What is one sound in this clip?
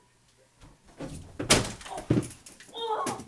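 A body lands with heavy thuds on a floor.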